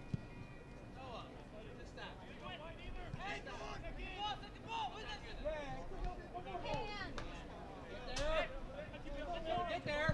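Spectators call out and cheer from the sideline.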